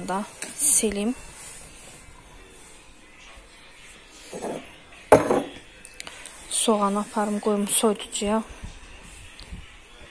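A cloth rubs and wipes across a countertop.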